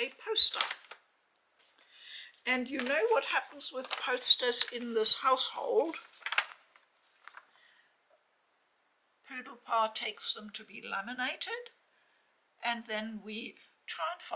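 A large paper poster rustles as it is unfolded.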